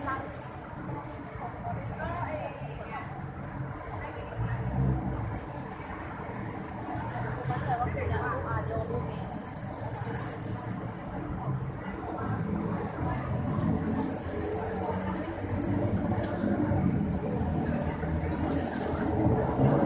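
Traffic rumbles steadily along a nearby city street.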